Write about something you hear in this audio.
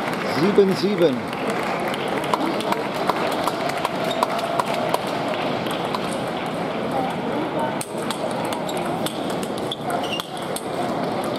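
A table tennis ball clicks back and forth off paddles and a table.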